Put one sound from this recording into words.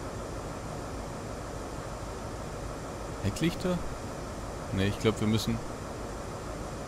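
A locomotive's diesel engine idles with a low, steady rumble.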